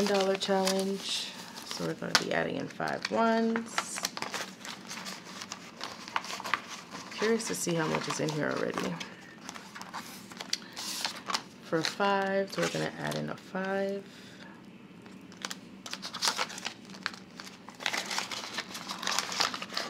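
Paper banknotes rustle and crinkle as they are counted and handled.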